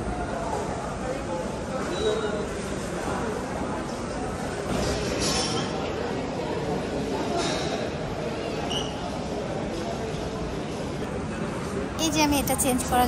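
Shoppers murmur and chatter in a busy indoor hall.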